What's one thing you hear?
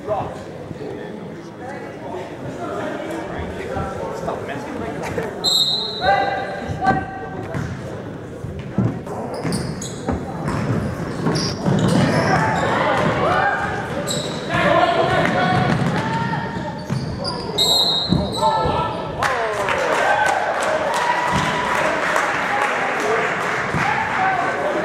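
Spectators in a large echoing gym cheer and shout.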